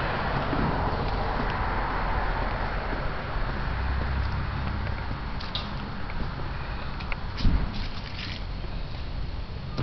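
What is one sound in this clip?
Wind blows steadily outdoors, rustling through the trees.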